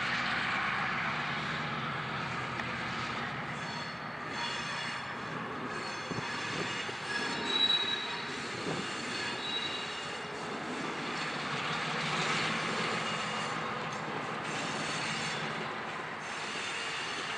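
Steel wheels creak and squeal on the rails as a locomotive rolls slowly.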